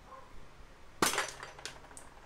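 A small gun fires with a sharp crack.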